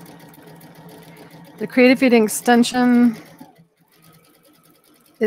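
A sewing machine hums steadily as it stitches.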